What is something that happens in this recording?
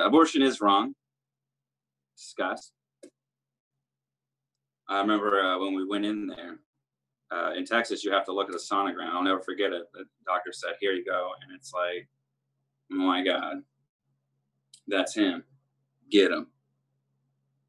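A man talks with animation over an online call, in pauses.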